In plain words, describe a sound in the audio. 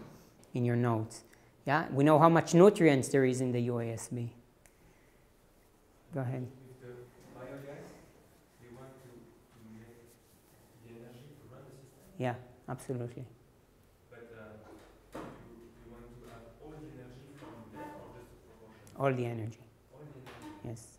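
A man speaks calmly, as if giving a lecture, in a room with a slight echo.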